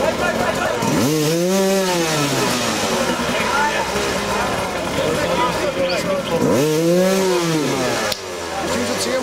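A motorcycle engine revs loudly in short bursts.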